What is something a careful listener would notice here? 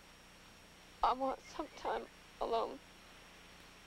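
A young woman speaks in a worried voice.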